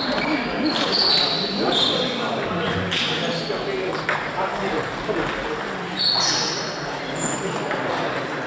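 Shoes squeak on a hall floor.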